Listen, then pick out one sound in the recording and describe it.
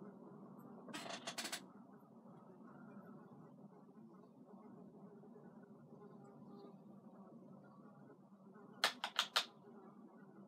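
A small object clicks between a woman's fingers.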